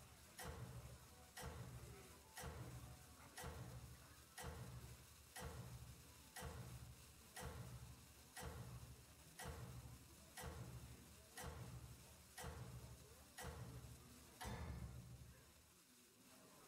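A game timer ticks steadily, once each second.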